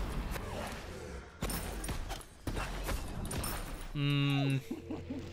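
Game sounds of spells and hits burst out in quick succession.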